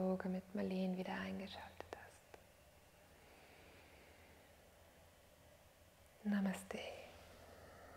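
A woman chants a long steady tone close by.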